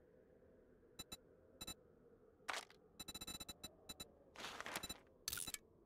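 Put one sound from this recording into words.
Interface clicks tick in quick bursts.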